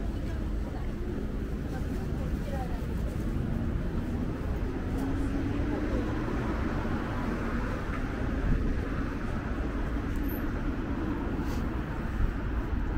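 Footsteps tap on a paved sidewalk.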